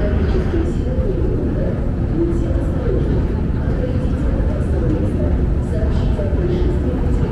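An escalator rumbles and hums steadily in a large echoing hall.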